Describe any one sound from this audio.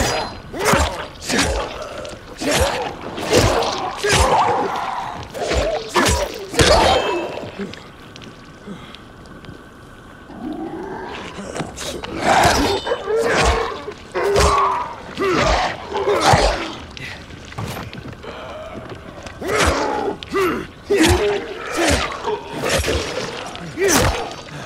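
A blade hacks into flesh with wet, heavy thuds.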